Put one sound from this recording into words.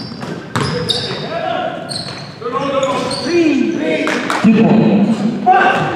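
Men shout and call out to each other in a large echoing hall.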